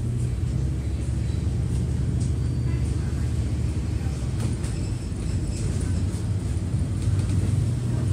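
A bus engine rumbles steadily while riding along a city street.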